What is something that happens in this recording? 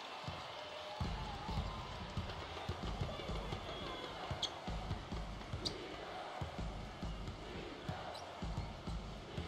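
A basketball bounces on a hardwood floor in a steady rhythm.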